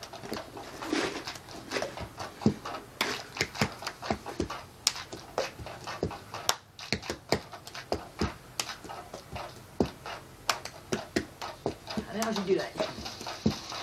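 A plastic cup taps and thumps on a carpeted floor.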